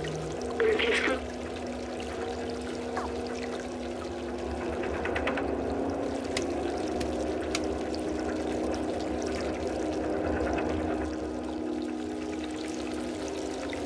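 A small flying robot hums and chirps.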